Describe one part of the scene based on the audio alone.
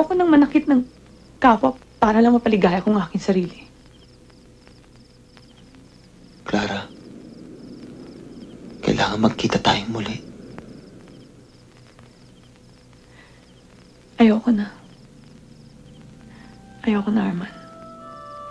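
Two men talk quietly close by, in short exchanges.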